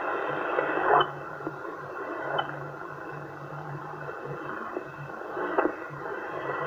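Tuning clicks sound from a radio as a knob is turned.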